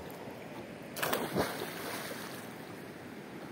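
Something splashes heavily into a river.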